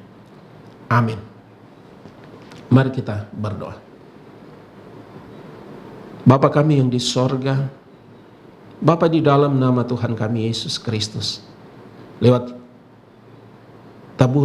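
A middle-aged man reads aloud slowly and with feeling, close to a microphone, with pauses between phrases.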